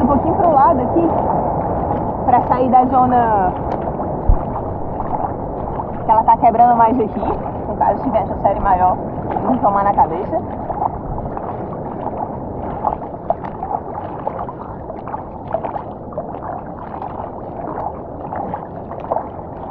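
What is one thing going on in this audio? Gentle waves lap and slosh close by.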